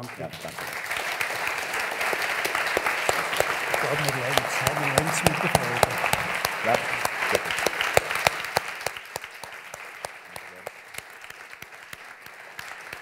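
An audience applauds loudly, and the applause slowly fades.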